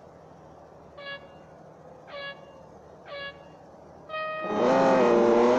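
Countdown beeps sound three times, then a higher final beep.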